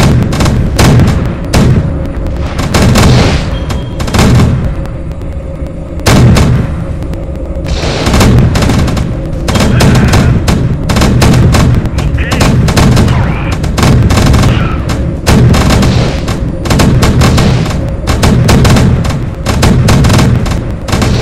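Rapid gunfire crackles and rattles in bursts.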